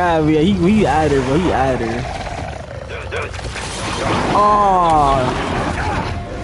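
A monstrous voice growls and snarls.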